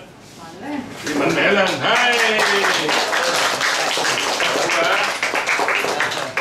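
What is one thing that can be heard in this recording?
A crowd of people claps and cheers.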